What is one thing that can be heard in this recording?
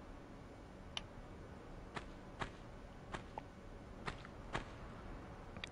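Footsteps tap lightly on stone.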